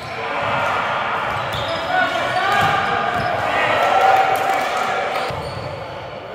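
Several men shout and call out in a large echoing hall.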